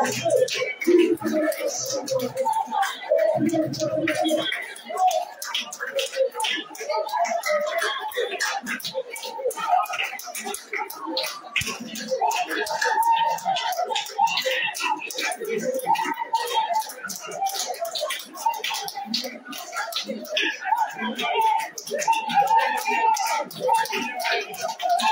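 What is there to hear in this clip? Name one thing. A crowd of women and men pray aloud at once, their voices overlapping and rising with fervour.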